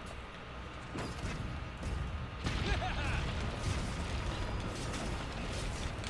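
A cannon fires with a heavy boom.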